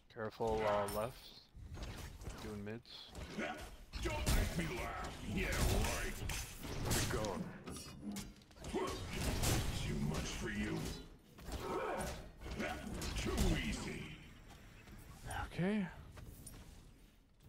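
Game sound effects clash and whoosh.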